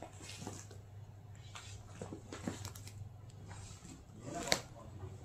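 Fabric rustles as a hand pats and handles a cloth bag.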